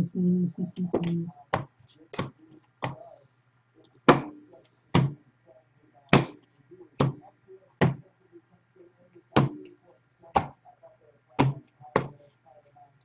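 Cards snap down on a table, one at a time.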